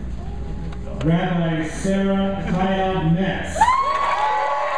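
A man speaks loudly through a microphone in a large hall.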